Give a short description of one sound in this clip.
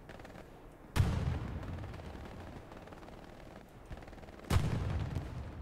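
A rifle fires sharp shots that echo away.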